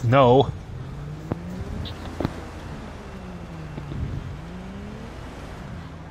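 Footsteps tread on snow.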